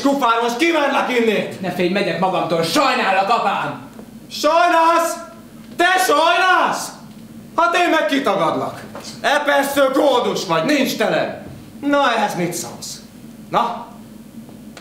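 A man speaks loudly and dramatically on a stage in an echoing room.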